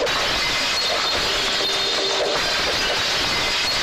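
Glass shatters with a sharp crash.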